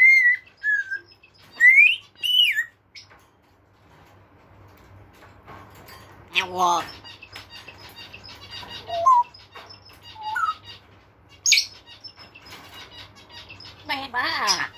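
A parrot whistles and squawks in high, gliding calls close by.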